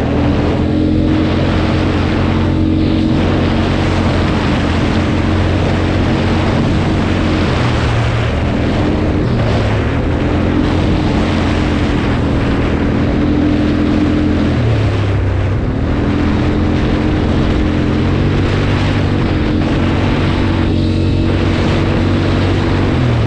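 An all-terrain vehicle's engine drones loudly throughout, its pitch rising and falling as the throttle changes.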